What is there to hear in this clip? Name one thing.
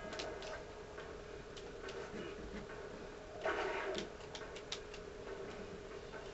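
Video game music plays steadily.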